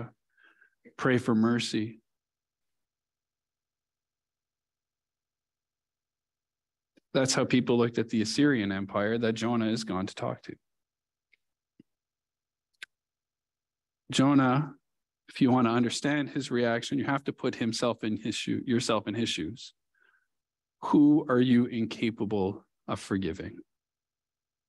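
A man speaks calmly into a headset microphone, pausing between phrases.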